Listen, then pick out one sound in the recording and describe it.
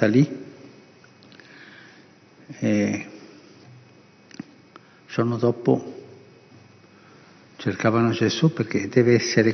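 An elderly man speaks slowly and calmly into a microphone, with long pauses, in a reverberant room.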